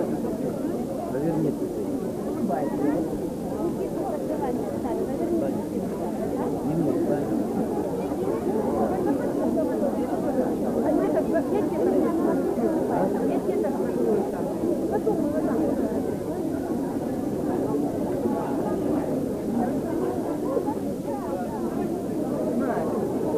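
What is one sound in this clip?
A crowd of adults and children murmurs and chatters outdoors.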